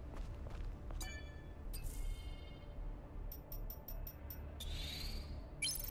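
Short electronic menu chimes and clicks ring out in quick bursts.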